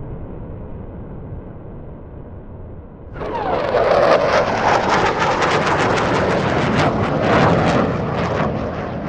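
A jet engine roars loudly overhead, crackling and booming as the jet passes.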